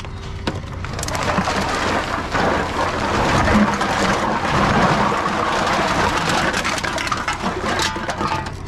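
A plastic sack rustles and crinkles loudly.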